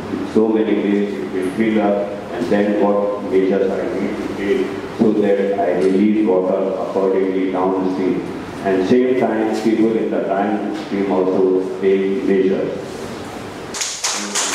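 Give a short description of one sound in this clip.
A man speaks steadily into a microphone, heard through a loudspeaker in a large echoing hall.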